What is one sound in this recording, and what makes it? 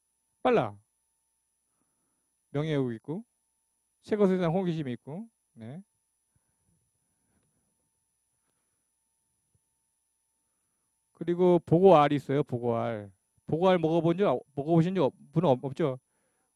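A middle-aged man lectures through a microphone in a pausing, explaining manner.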